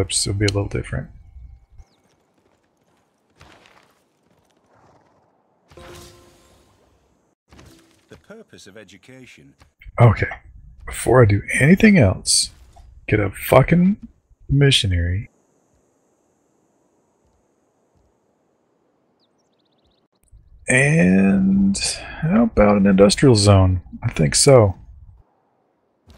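A man talks with animation into a headset microphone, heard through an online call.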